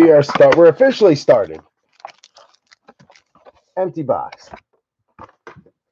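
A cardboard box flap is pried open.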